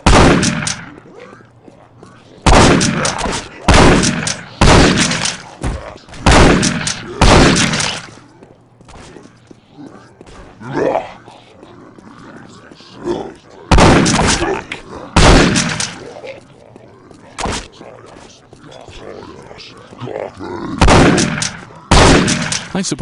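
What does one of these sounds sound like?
A shotgun fires loud booming blasts again and again.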